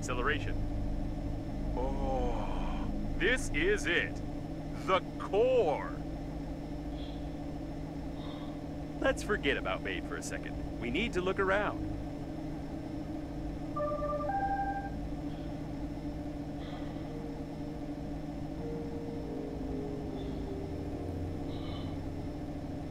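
A spacecraft engine hums low and steadily.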